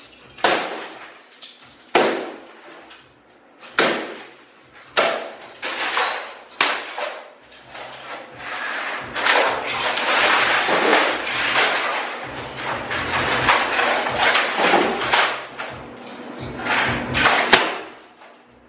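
A metal bar smashes hard against plastic and metal objects with loud crashes.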